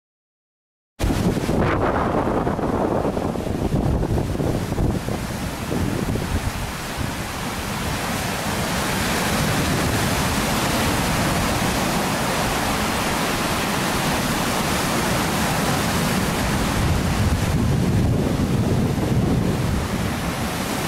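Waves crash and wash over a rocky shore.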